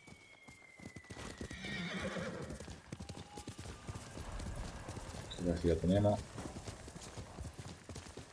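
A horse's hooves thud as it gallops.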